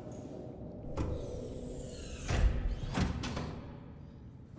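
A hatch door hisses and swings open with a heavy clunk.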